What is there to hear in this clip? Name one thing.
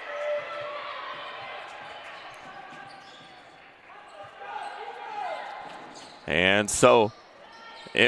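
A basketball bounces on a wooden court.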